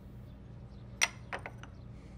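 A cup clinks onto a saucer.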